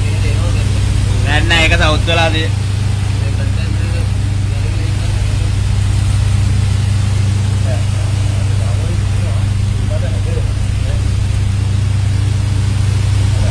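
A low engine hums steadily close by.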